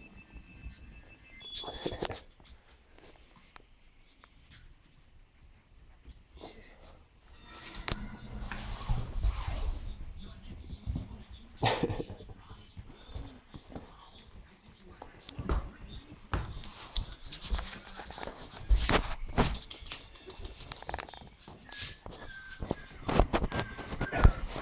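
Puppies' claws patter and scratch on a hard tile floor.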